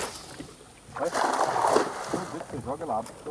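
A cast net splashes down onto water.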